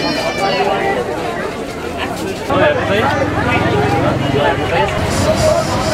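A crowd of people chatters in a busy market.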